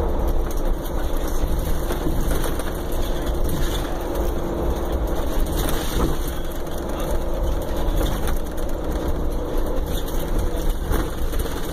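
A car engine rumbles steadily from inside the car.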